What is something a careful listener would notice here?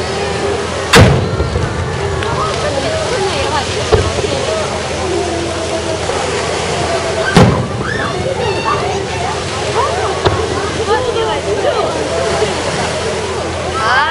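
Fireworks crackle and fizzle after bursting.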